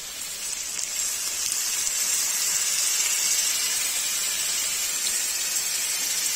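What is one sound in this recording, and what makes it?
Liquid pours into a sizzling pan.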